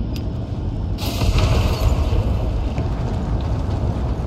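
Heavy metallic footsteps clank on a metal floor.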